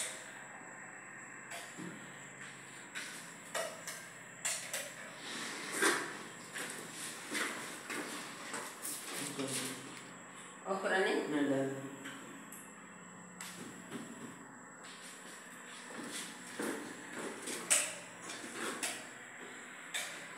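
A man pushes a wall, which scrapes and grinds.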